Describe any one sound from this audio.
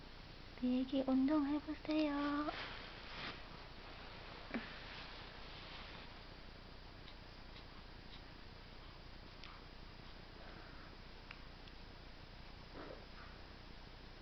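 A baby coos softly close by.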